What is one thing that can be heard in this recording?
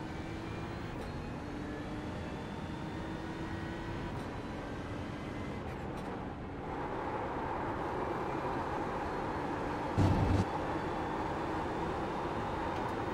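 A racing car engine roars steadily, its pitch dropping as it slows into a corner and then climbing again.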